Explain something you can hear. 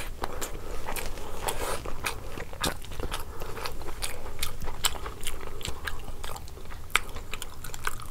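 Fingers squish and mix rice close to a microphone.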